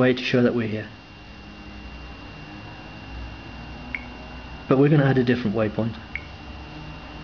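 A finger taps lightly on a phone's touchscreen.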